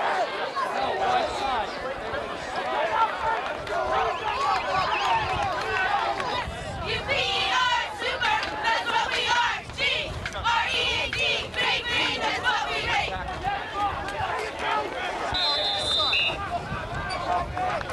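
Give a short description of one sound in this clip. A crowd of spectators chatters and cheers nearby, outdoors.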